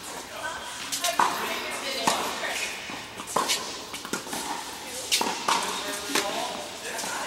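Tennis rackets strike balls in a large echoing indoor hall.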